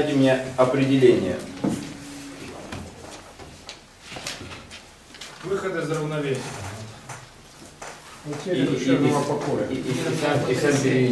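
A young man talks with animation close by, in a small room with some echo.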